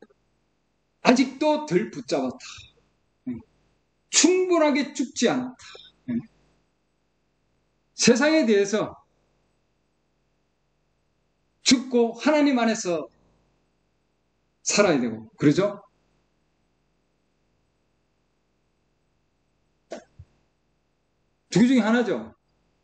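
A middle-aged man speaks calmly in short bursts with pauses, heard through an online call.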